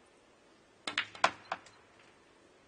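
Snooker balls clack sharply against each other.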